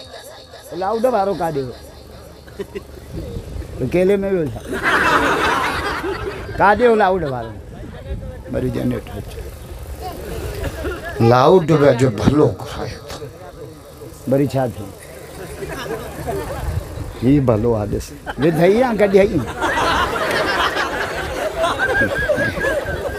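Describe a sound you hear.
A middle-aged man preaches passionately into a microphone over loudspeakers, singing out long drawn phrases.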